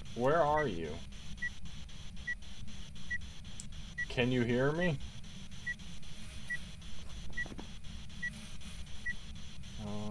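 An electronic device beeps softly at a steady pace.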